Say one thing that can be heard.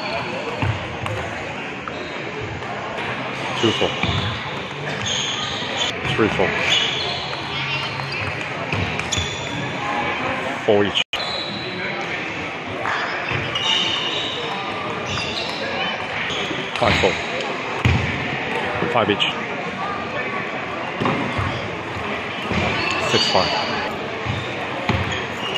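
A table tennis ball clicks back and forth off paddles and a table, echoing in a large hall.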